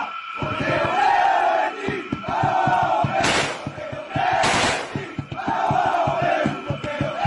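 A large group of men chants loudly in unison outdoors.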